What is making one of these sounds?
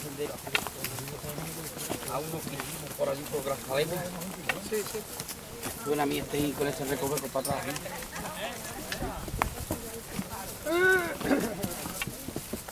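Several adult men and women talk with one another.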